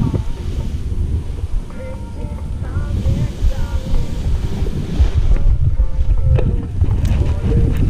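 A paraglider wing rustles and flaps as it fills with air.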